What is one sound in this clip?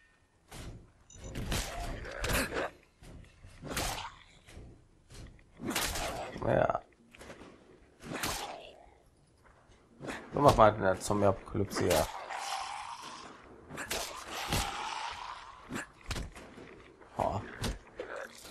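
An axe swings and strikes with heavy thuds.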